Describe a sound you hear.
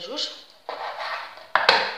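A knife slices through raw meat on a wooden board.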